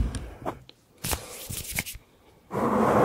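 A man makes soft, wet mouth clicks very close to a microphone.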